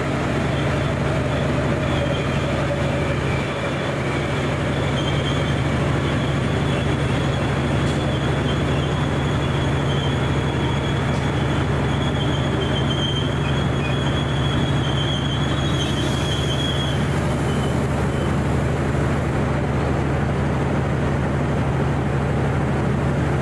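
Traffic roars past on a busy motorway nearby.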